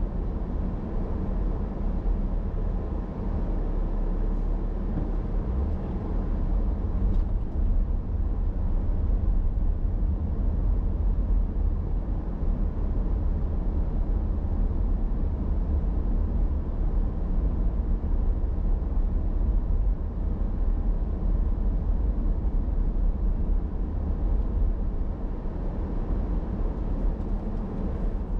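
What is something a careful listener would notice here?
Tyres roll steadily over pavement.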